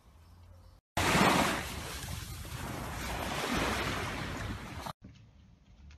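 Small waves wash onto a sandy beach.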